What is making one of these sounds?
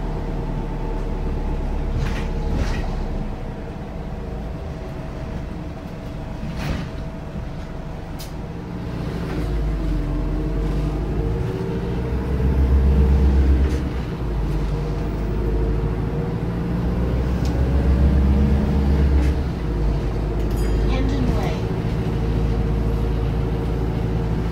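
The bus body rattles and clatters over bumps.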